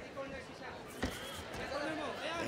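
A bare foot kick smacks against a fighter's body.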